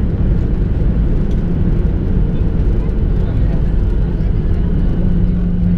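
An airplane's wheels rumble along the runway.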